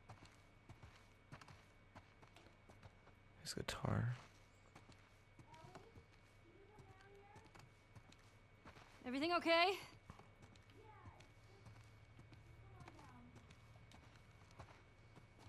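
Footsteps tread on a wooden floor.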